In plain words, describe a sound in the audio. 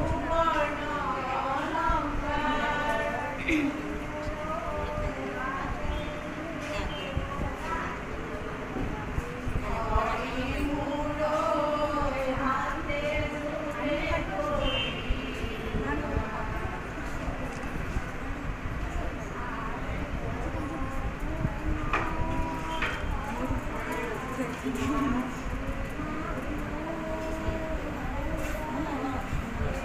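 A group of women sing together nearby.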